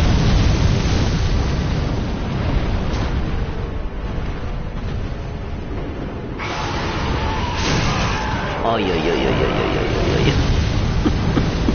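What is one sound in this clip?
A burst of fire roars.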